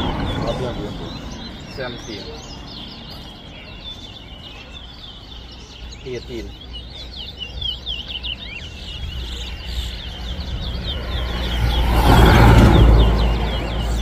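Caged birds chirp and twitter rapidly nearby.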